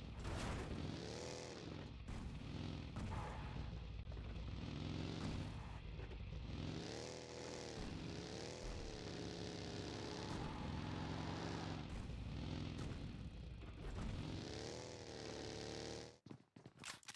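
A buggy engine revs and whines as it drives over rough ground.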